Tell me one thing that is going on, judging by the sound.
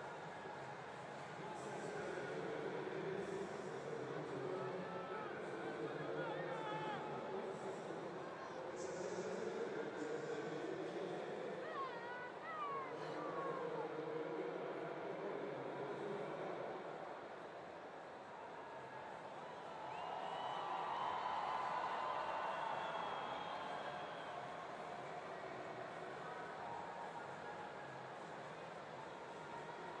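A large crowd murmurs in a big open stadium.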